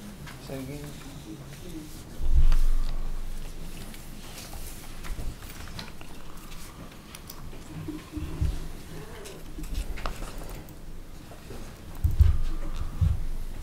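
A man talks at a distance in a large room.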